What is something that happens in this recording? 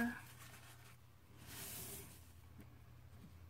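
A paper towel rustles and crinkles.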